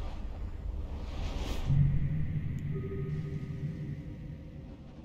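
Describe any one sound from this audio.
A deep rumbling whoosh rushes and fades.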